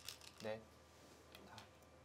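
A stone clicks onto a wooden game board.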